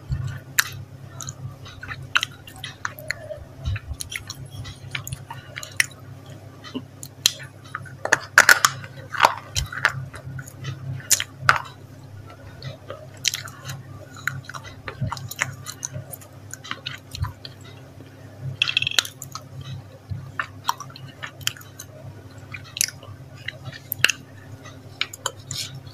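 A woman chews wetly close to a microphone.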